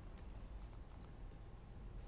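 A man speaks softly, heard from across a stage.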